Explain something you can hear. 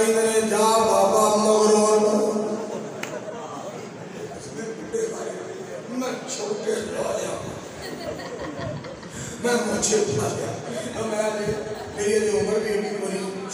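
A man chants and sings loudly into a microphone, echoing over a loudspeaker.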